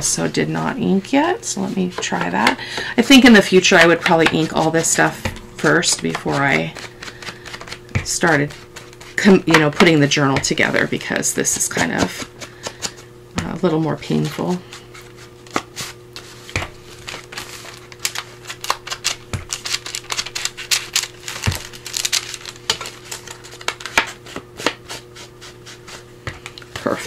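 A foam ink tool taps and dabs against paper.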